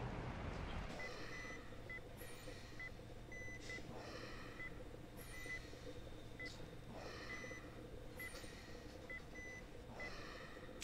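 A medical monitor beeps steadily.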